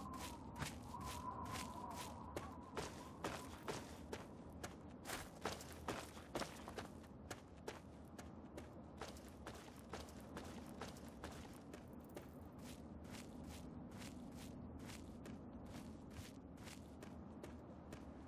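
Footsteps crunch quickly on gravel and dry ground.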